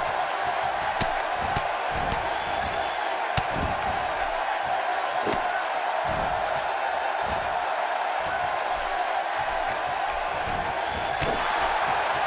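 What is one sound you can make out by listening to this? Bodies thud and slap hard against a wrestling mat.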